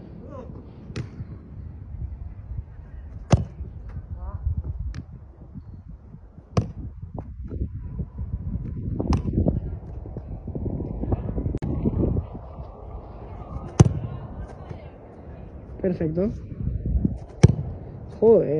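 A football is kicked hard several times with sharp thuds.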